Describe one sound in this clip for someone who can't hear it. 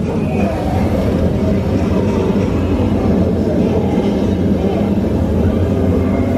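A smoke machine hisses as it blasts a jet of fog.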